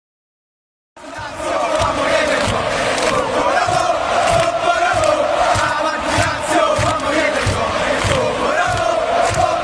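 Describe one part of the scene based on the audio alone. A large crowd of fans chants loudly in unison.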